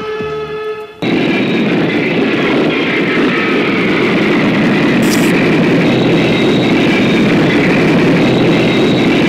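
A jet airliner roars loudly as it takes off and climbs.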